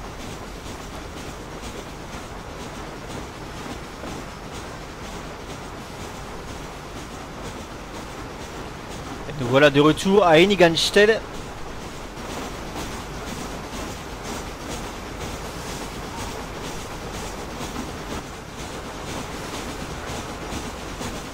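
A steam train rumbles and clatters along the tracks.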